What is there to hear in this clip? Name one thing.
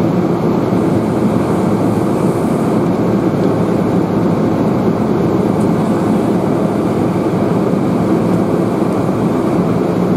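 A fire hose sprays with a loud, steady rushing hiss.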